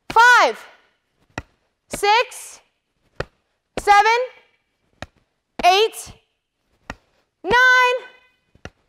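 A young woman shouts sharply in short bursts, close by.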